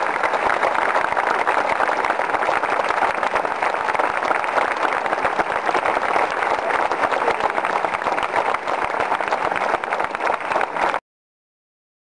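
A large crowd chants and claps loudly outdoors.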